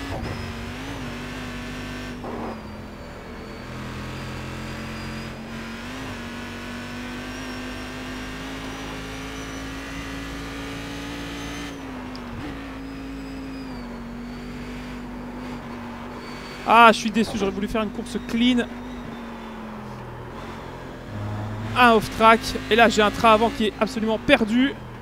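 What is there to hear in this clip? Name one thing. A race car engine drones steadily, its pitch rising and falling with gear changes.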